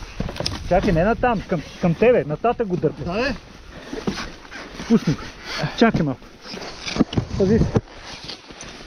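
A man grunts and groans with effort close by.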